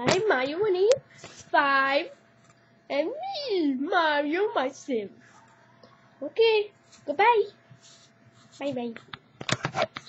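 A young boy speaks close by in an animated, playful voice.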